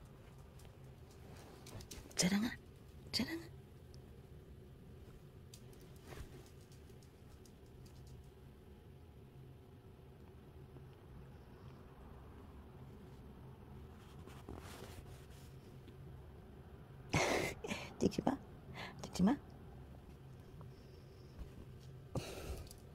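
Bedding rustles as a kitten squirms and paws.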